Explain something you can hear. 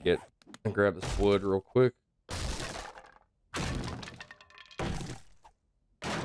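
An axe chops into wood with dull thuds.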